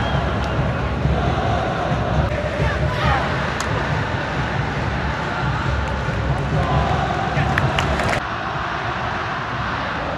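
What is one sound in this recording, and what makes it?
A large stadium crowd chants and roars loudly.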